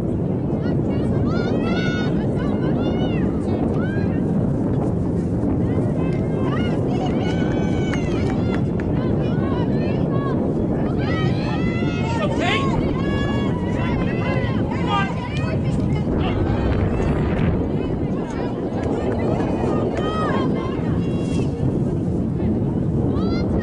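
Young women shout and call out in the distance.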